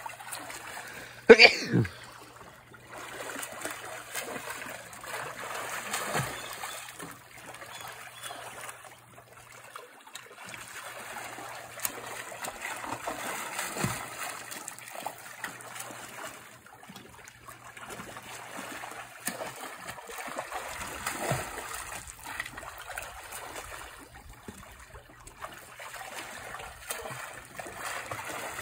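A swimmer splashes steadily through churning water.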